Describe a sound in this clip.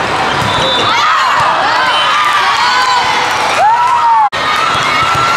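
Young women shout and cheer together.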